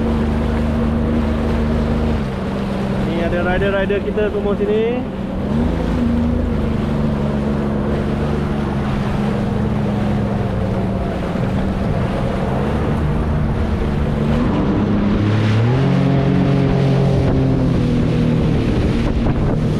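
A jet ski engine hums steadily up close and revs up and down.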